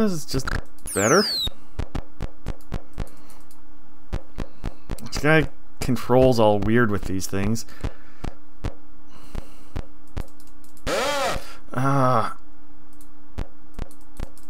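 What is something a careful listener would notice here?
Swords clash with sharp metallic clicks.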